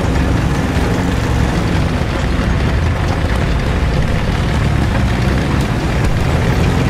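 A tank engine rumbles loudly and steadily.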